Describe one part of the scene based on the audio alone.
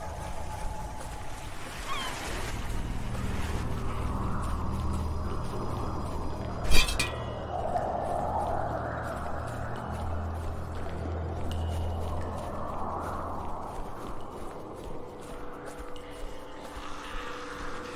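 Water rushes and splashes nearby.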